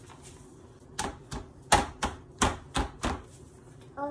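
Small hands pat and slap on paper.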